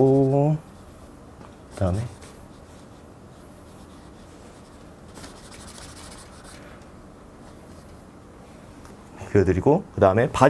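A young man speaks casually nearby, in short bursts.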